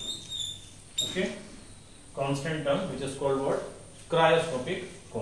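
A young man speaks calmly, as if explaining.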